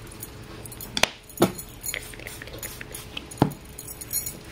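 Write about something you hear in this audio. A small jar knocks down onto a table.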